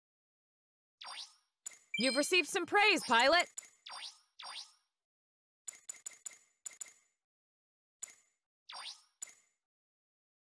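Short electronic chimes ring out, one after another.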